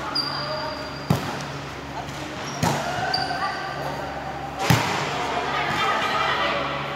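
Young women call out to each other across the court.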